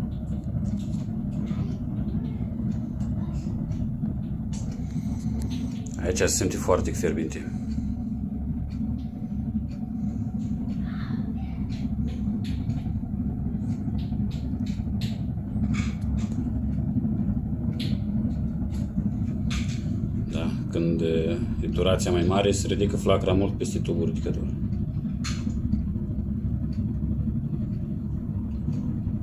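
A melting furnace hums steadily and loudly.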